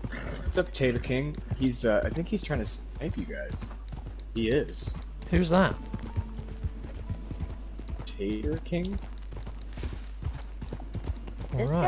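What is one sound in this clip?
A horse's hooves thud steadily on dirt.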